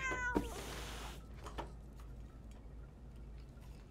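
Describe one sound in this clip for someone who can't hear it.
A robot's metal feet clank on the floor.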